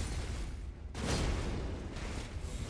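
A blast bursts with a heavy boom.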